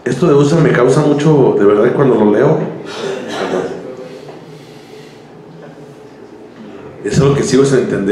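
A man speaks with animation through a microphone, heard over loudspeakers.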